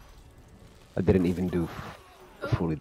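Spells and explosions burst in a game.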